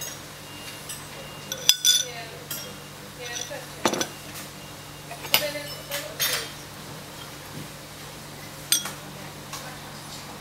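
A spoon stirs tea in a cup.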